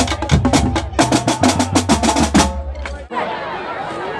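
A drumline beats snare and bass drums loudly.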